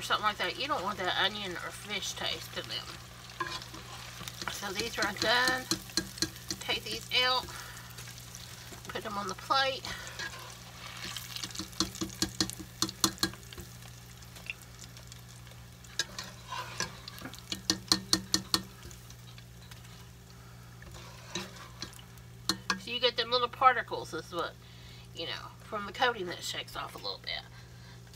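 Hot oil sizzles and bubbles steadily in a pot.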